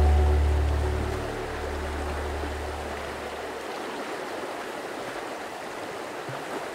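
A river rushes and gurgles steadily below.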